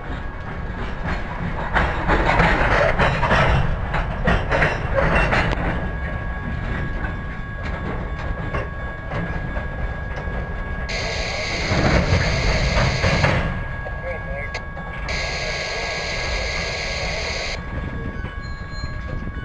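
A freight train rolls slowly past with a steady low rumble.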